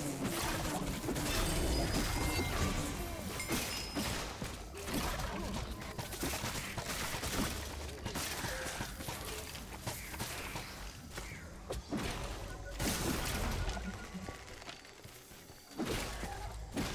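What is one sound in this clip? Magic blasts crackle and burst in quick bursts.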